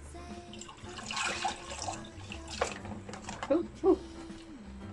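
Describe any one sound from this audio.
Liquid pours and splashes into a pot.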